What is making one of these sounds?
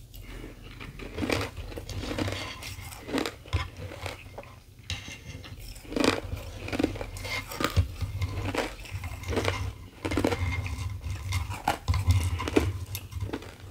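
Fingernails tap and scratch on ice and wood close to a microphone.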